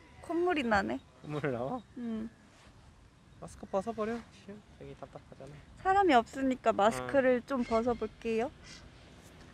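A young woman talks cheerfully and close by.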